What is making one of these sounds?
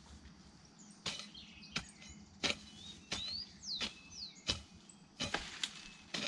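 A hoe chops into soil with dull, regular thuds.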